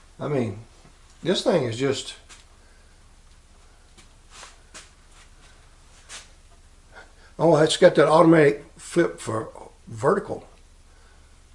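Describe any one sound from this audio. An elderly man talks calmly and close up, in short bursts with pauses.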